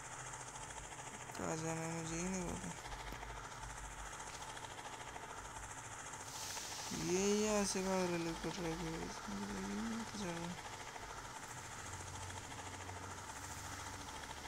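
A helicopter's rotor whirs steadily as it flies.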